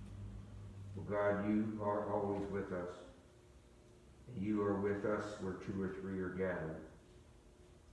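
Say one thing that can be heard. An elderly man reads aloud calmly in an echoing room.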